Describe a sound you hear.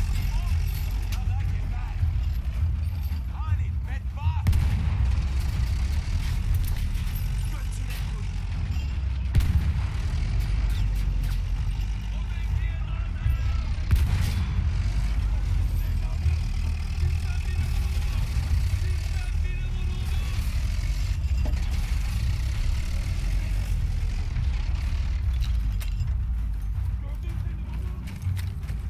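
A tank engine rumbles low and steady throughout.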